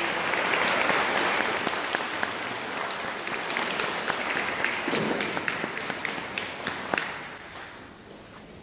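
A crowd claps and cheers loudly in a large echoing hall.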